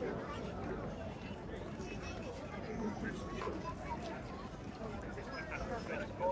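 A crowd of people chatter outdoors nearby.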